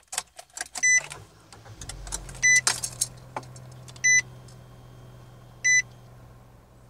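A car's warning chime beeps several times.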